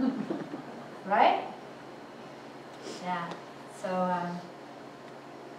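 A woman speaks calmly in a short, pausing way.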